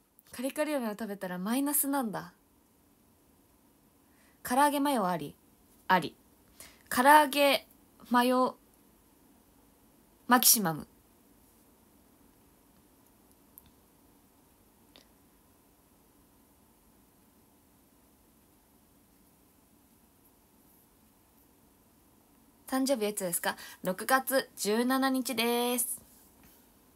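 A young woman talks with animation close to a microphone, in short bursts with long pauses.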